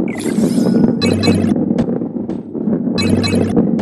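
Bright chimes ring as coins are collected.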